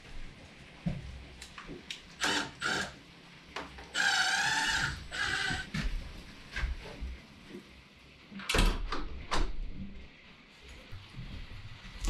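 Light knocks and taps sound on a wooden door frame.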